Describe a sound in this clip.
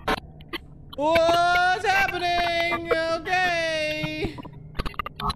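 A young man sings a drawn-out, wavering note close to a microphone.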